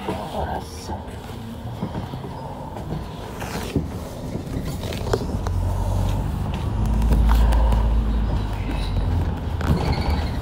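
A vehicle's engine rumbles as it drives along a road.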